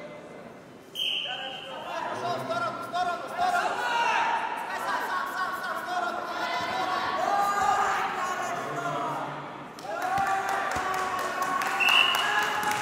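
Men shout encouragement to fighters during a bout.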